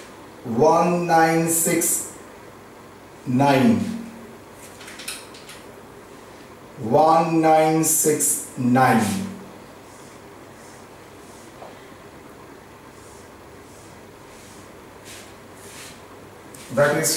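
A man speaks calmly nearby, in short phrases.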